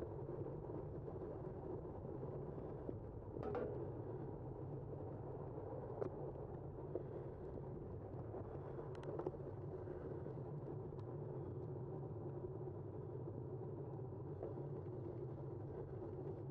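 Wind rushes steadily past outdoors.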